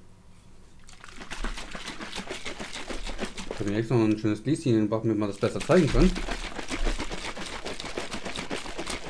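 Powder rattles and swishes as a shaker bottle is shaken hard.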